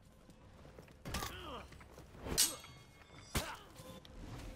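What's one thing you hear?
Metal weapons clash and ring out in a fight.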